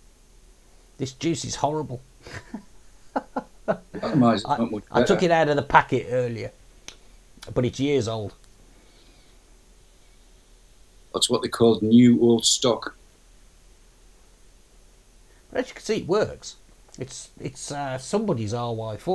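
A man talks calmly close to a microphone, in short bursts with pauses.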